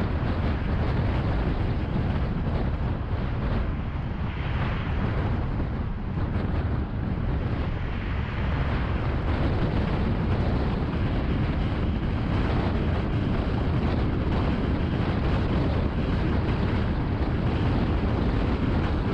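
Road noise from a car driving on a highway rumbles steadily.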